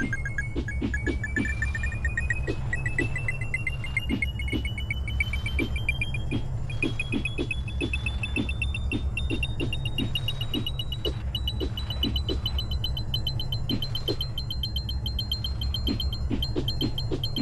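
Coin pickups chime rapidly, climbing steadily in pitch.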